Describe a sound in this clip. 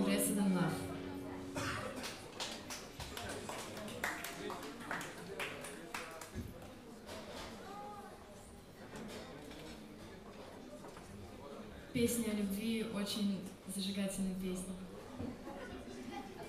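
A band plays guitars, drums and piano.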